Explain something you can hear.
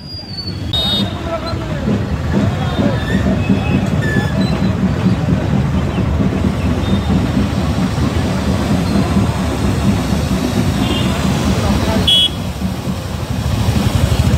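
A firework fountain hisses and crackles loudly.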